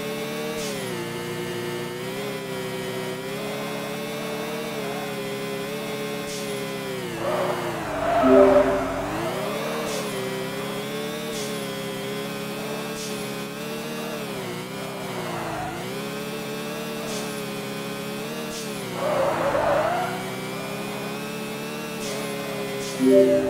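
A racing car engine hums steadily, rising and falling in pitch.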